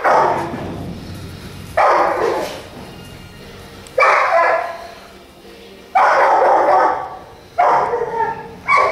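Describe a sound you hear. A dog barks loudly, again and again.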